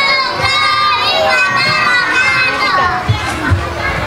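Young children sing together into a microphone.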